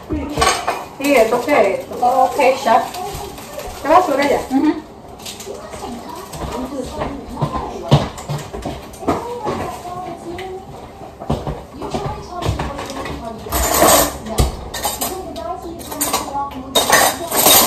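Dishes and utensils clatter.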